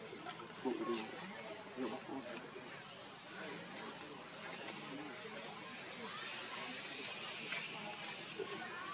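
Small monkeys scratch and shuffle on stone.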